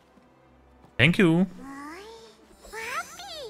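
A small creature speaks in a high, squeaky voice.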